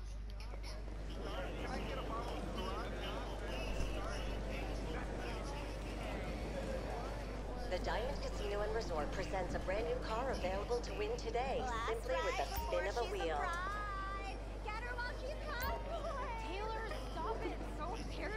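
A crowd of people chatters and murmurs nearby.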